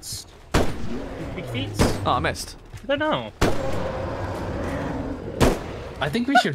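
Rifle shots ring out sharply.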